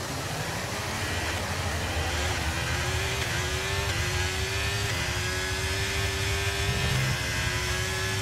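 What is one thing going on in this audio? A racing car engine roars, rising in pitch and dropping briefly at each gear change.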